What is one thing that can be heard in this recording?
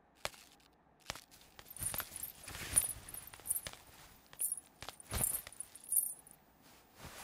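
Footsteps shuffle softly across a floor.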